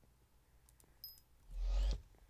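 A short electronic chime pings as an item is bought.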